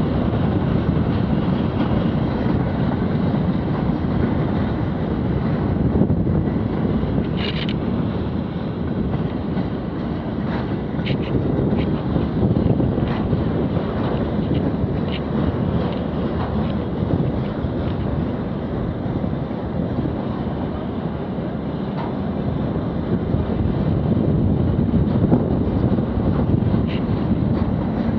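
A freight train rumbles past on the rails.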